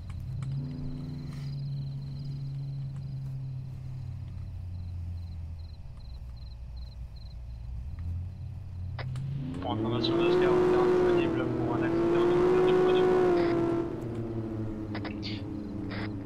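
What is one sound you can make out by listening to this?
A car engine hums, then revs up loudly as the car accelerates.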